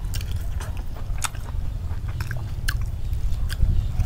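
A young woman slurps and chews noodles.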